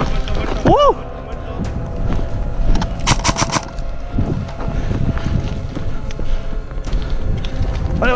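Footsteps crunch on dry, gravelly ground.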